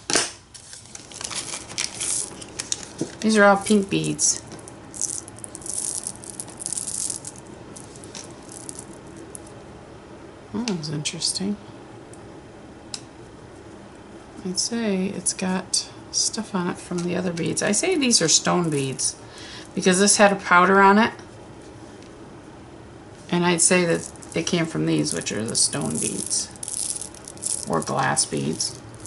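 Small glass beads clink and rattle in a hand.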